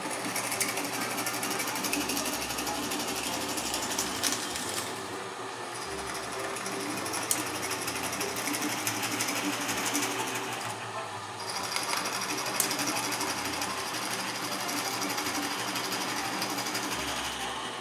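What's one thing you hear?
A drill press whirs steadily as it bores into wood.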